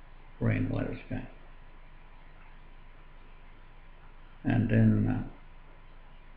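An elderly man speaks calmly and briefly into a nearby microphone, pausing between phrases.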